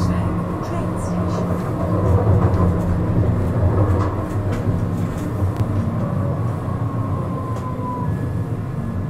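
Tram wheels squeal on the rails.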